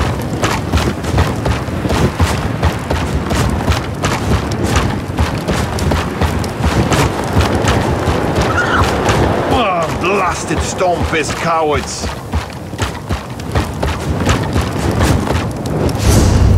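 Footsteps crunch steadily over snow.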